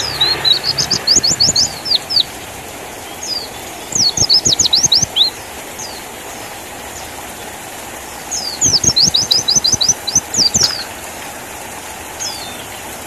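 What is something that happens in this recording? A small songbird sings in quick bursts of high, rapid chirps.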